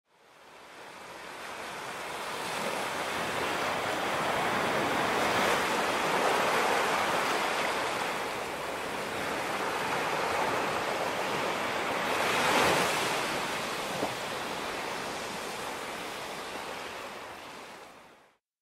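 Gentle waves wash onto a sandy shore and draw back in a slow, steady rhythm.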